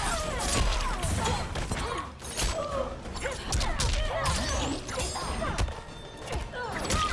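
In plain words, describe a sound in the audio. Heavy punches and kicks land with sharp thuds.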